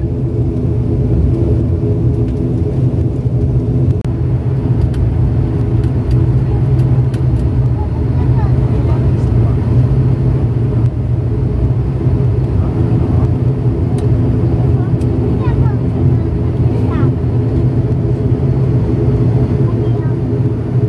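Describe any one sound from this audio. Aircraft wheels rumble over a runway.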